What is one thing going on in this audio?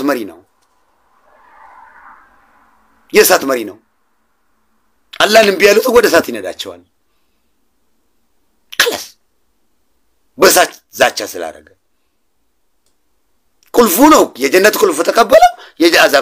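A man speaks close to a microphone in short bursts with pauses.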